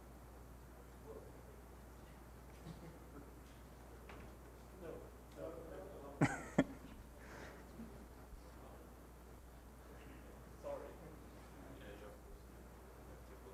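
A man speaks briefly into a microphone in a large echoing hall.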